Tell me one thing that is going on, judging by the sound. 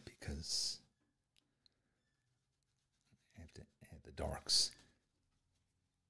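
A man talks calmly into a nearby microphone.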